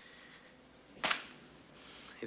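A paper envelope slaps down onto a desk.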